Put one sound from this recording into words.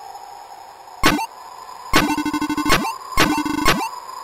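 Short electronic blips chirp in quick bursts.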